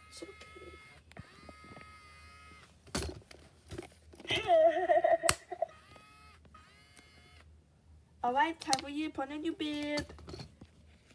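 A toy doll speaks and giggles in a high, childlike electronic voice.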